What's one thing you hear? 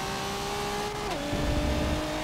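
A racing car engine drops sharply in pitch as the car shifts up a gear.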